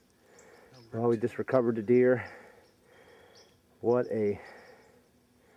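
A young man speaks calmly close by outdoors.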